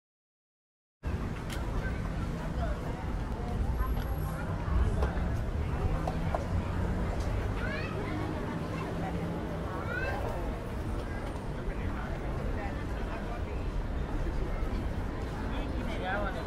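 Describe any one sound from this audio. A busy street crowd chatters and murmurs outdoors.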